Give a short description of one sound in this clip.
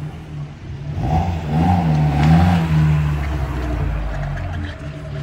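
A sports car engine idles and burbles nearby.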